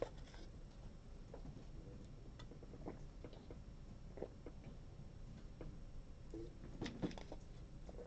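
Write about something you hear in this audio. A young man gulps from a plastic bottle.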